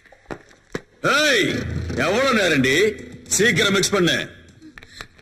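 A man sings loudly and with emotion, close by.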